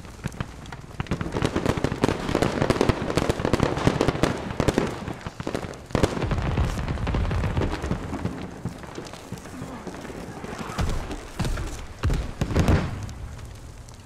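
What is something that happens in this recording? Footsteps thud on hard floors.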